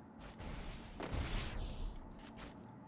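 A smoke grenade bursts with a hiss.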